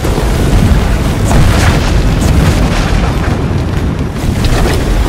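Fires roar and crackle with a deep rumble.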